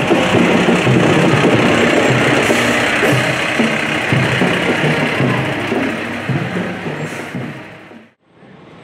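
A diesel fire engine rumbles as it drives past.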